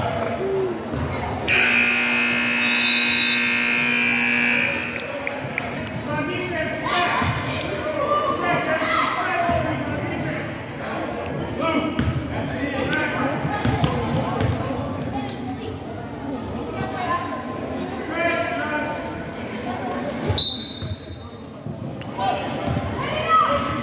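Children and adults talk and shout in an echoing gymnasium.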